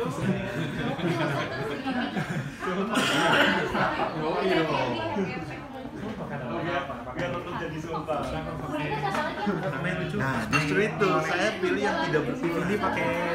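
Several men and women chatter and talk over each other nearby.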